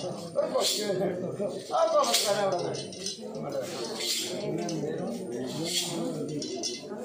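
An elderly man chants in a steady, singing voice nearby.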